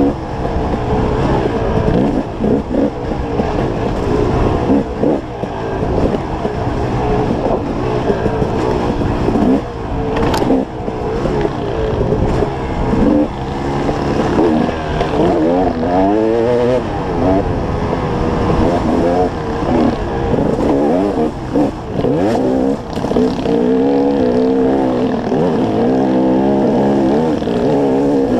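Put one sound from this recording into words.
A dirt bike engine revs hard and changes pitch as the bike climbs and drops along a trail.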